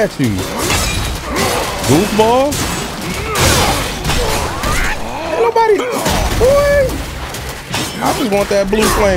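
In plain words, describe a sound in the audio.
Weapons clash and thud in a video game fight.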